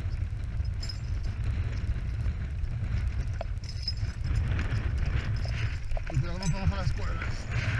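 Metal climbing gear clinks and jingles.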